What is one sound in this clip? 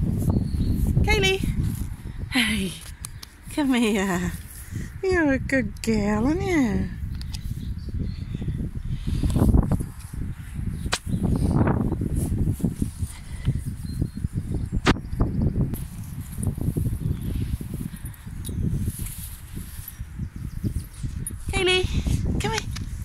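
A woman speaks to a dog close by in a high, affectionate voice.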